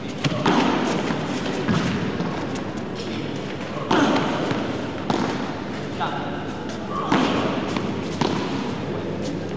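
Rackets strike a ball back and forth in a large echoing hall.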